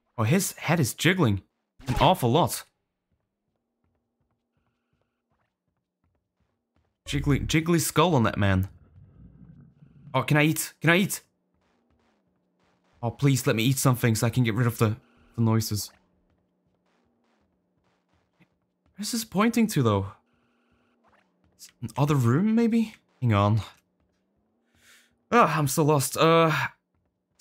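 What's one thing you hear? A young man talks with animation in short bursts, close to a microphone.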